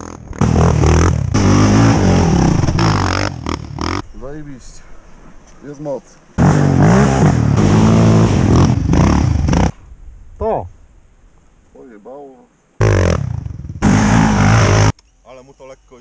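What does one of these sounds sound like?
A quad bike engine roars loudly up close.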